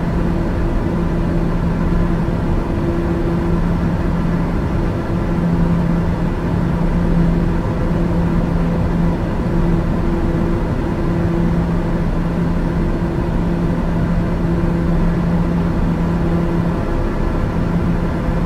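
A jet engine hums steadily with a low rushing roar.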